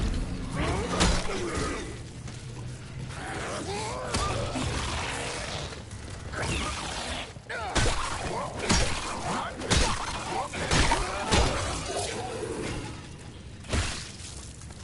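Heavy blows strike with sharp thuds.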